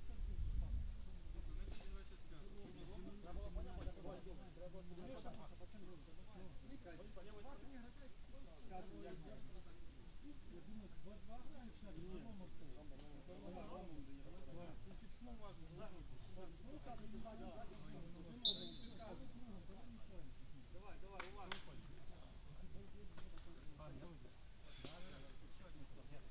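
Several young men talk and call out to each other outdoors.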